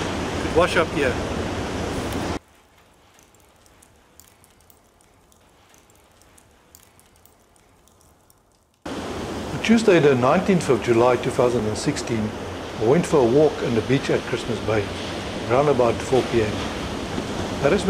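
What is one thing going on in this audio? A middle-aged man speaks calmly into a microphone, close by.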